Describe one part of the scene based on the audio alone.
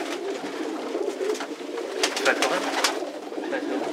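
A pigeon's wings flap and rustle.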